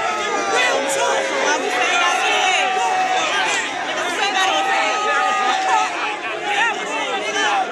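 A man raps forcefully and with animation close by.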